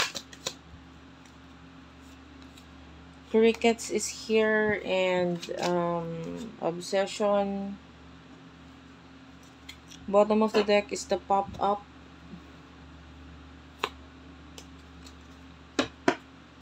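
Cards riffle and flick as a deck is shuffled.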